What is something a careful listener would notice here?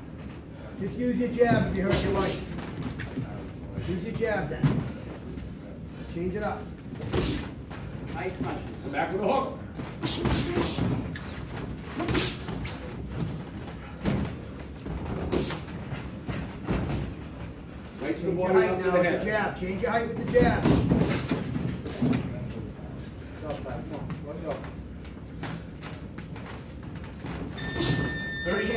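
Boxing gloves thud against each other and against bodies in quick bursts.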